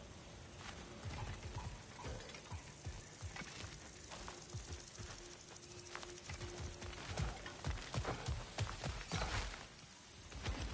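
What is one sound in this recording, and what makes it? Heavy footsteps crunch on dry ground.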